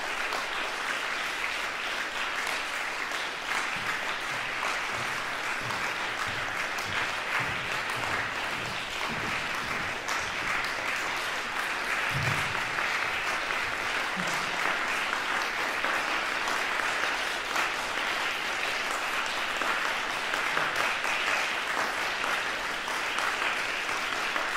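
An audience applauds steadily in a large echoing hall.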